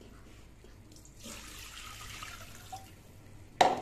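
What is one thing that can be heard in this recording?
Water pours from a cup into an aluminium pot.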